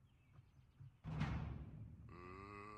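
A gunshot bangs loudly and echoes briefly.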